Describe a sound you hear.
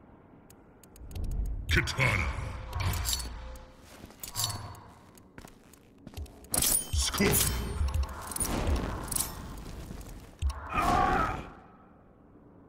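Game menu selections whoosh and clang as fighters are picked.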